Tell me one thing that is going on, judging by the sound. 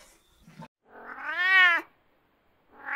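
A cat meows loudly.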